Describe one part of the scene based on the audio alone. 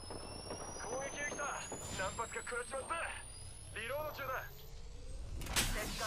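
An electric device crackles and hums as it charges up.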